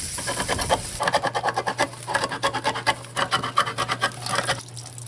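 A hand can opener clicks rapidly as it cuts around a can.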